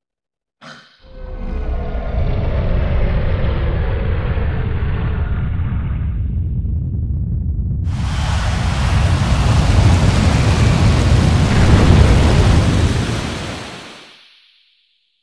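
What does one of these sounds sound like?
A heavy stone rumbles deeply as it slowly lowers.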